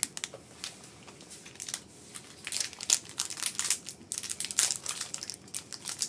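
Plastic wrappers crinkle and rustle as hands open them.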